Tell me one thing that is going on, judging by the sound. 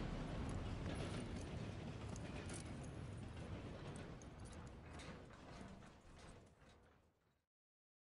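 A horse's hooves crunch slowly through snow.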